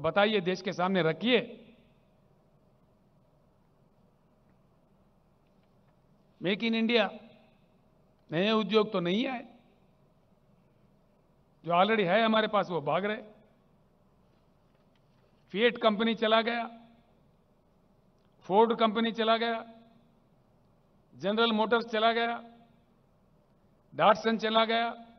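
An elderly man speaks slowly into a microphone in bursts, with long pauses, through loudspeakers.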